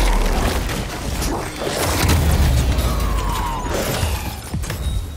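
Metal clangs and sparks burst as a drone is smashed.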